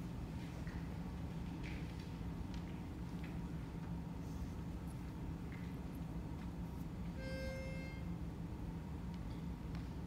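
A men's choir sings softly in a large hall.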